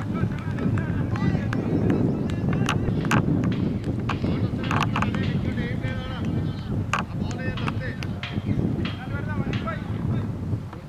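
Wind blows steadily across an open outdoor field.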